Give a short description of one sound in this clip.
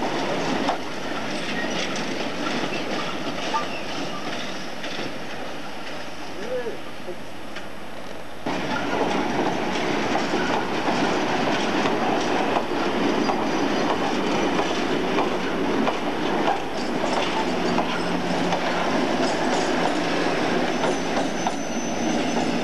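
Tank wagons of a freight train rumble and clatter over the rails.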